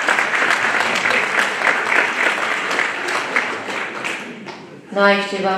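An elderly man claps his hands.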